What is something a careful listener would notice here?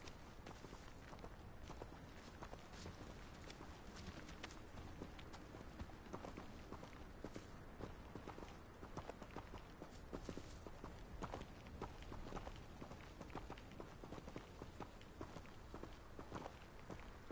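Footsteps crunch along a dirt path.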